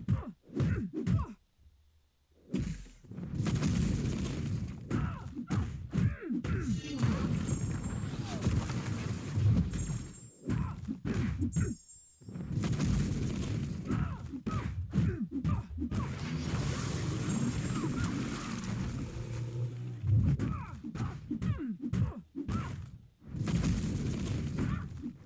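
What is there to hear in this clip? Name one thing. Punches and heavy blows land with loud thuds in a game fight.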